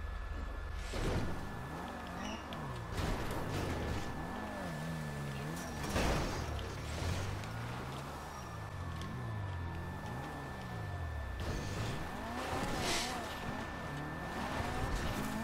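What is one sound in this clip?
Tyres skid and scrape over dirt.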